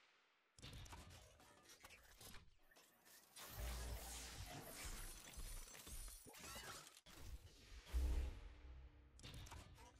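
Pods land with heavy mechanical thuds.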